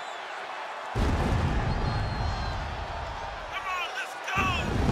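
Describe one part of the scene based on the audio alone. Pyrotechnic flames burst with a deep roaring boom.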